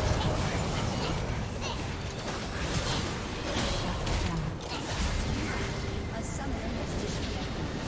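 Spell effects crackle and burst in a video game battle.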